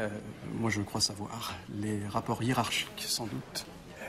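An older man answers in a low, firm voice.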